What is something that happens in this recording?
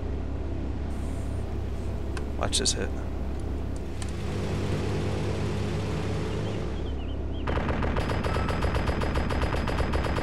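A propeller plane drones overhead.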